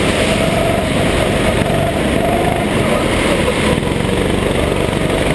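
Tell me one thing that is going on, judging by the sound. A go-kart engine buzzes loudly and steadily up close.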